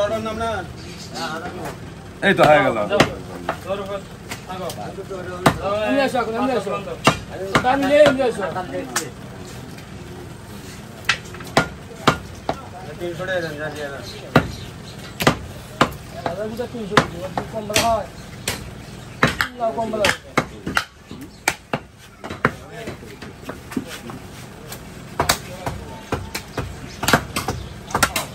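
A cleaver chops through meat onto a wooden chopping block.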